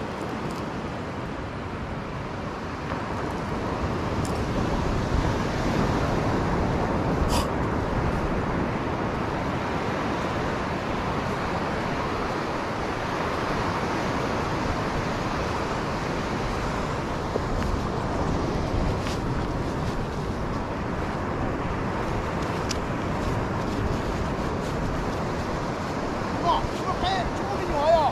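Wind blows hard and rumbles across the microphone outdoors.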